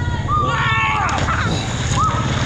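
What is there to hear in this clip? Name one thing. A swimmer splashes into the water.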